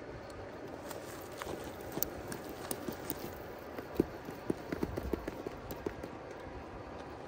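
Rubber tyres scrape and knock against rock.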